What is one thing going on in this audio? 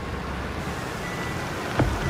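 Steam hisses from a wrecked car's engine.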